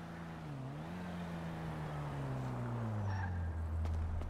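A car engine hums as a car drives slowly past close by.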